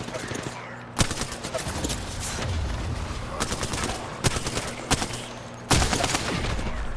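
A shotgun fires in a video game.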